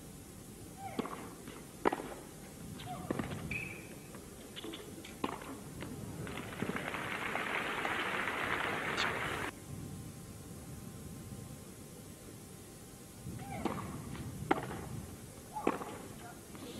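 A tennis ball is struck hard with a racket, a few times.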